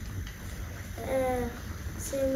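A young boy speaks softly and close by.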